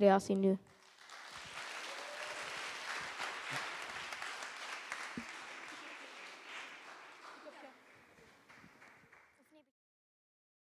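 An audience claps and applauds, then fades.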